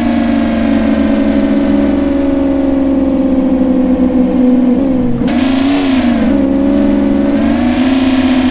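A sports car engine hums steadily, its pitch dipping and rising as the car slows and speeds up.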